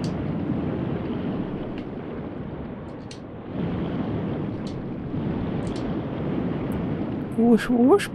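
Wind rumbles low and steady outdoors.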